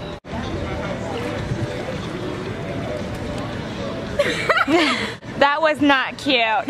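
Water splashes and laps gently in a pool.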